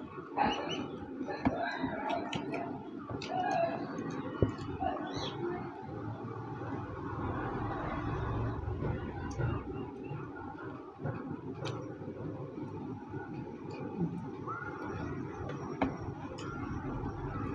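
Two young men chew food noisily.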